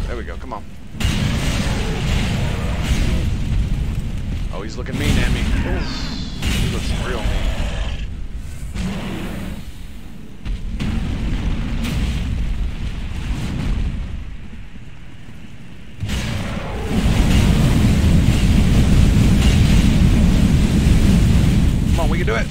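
Fire roars and bursts in loud rumbling blasts.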